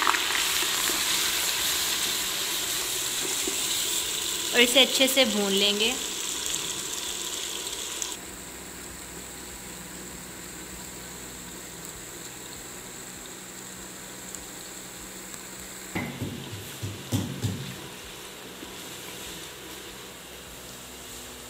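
Rice sizzles and crackles in hot oil in a pot.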